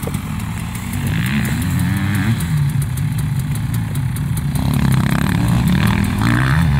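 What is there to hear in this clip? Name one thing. A dirt bike engine revs loudly.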